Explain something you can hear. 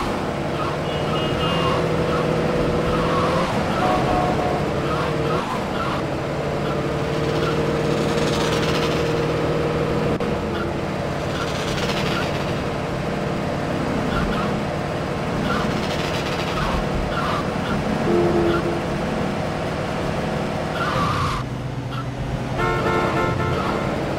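A car engine roars steadily.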